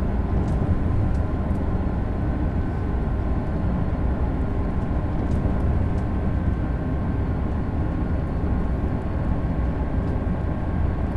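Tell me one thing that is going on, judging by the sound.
An electric high-speed train runs along the track at speed, heard from inside the cab as a steady low rumble.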